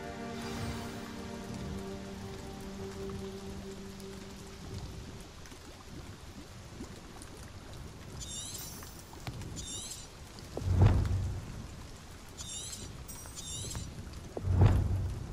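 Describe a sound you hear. Keyboard keys click softly under typing fingers.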